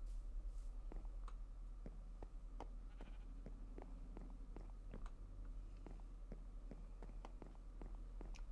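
Footsteps tap on wooden boards.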